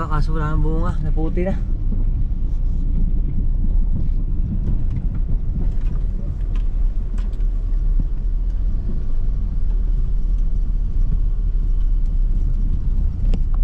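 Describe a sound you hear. A car engine rumbles steadily as the car drives along a bumpy dirt road.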